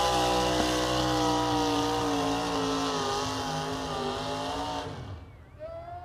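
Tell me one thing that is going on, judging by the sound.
A tractor engine roars loudly and strains under load.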